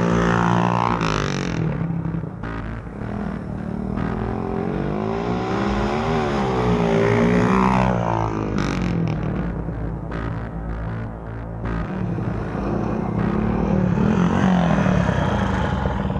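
Motorcycle tyres crunch over a gravel track.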